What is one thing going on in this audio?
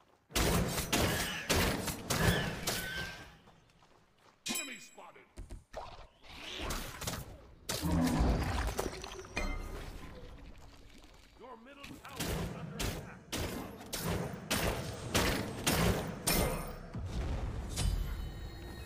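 Sharp blows and magical impacts land in quick bursts.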